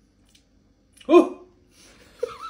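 A bottle cap twists open with a short fizzing hiss.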